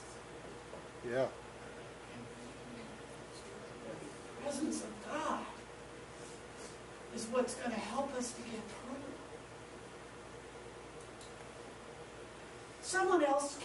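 An elderly woman speaks calmly and slowly, with long pauses.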